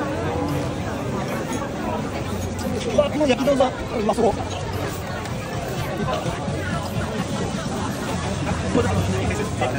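A dense crowd chatters and murmurs all around outdoors.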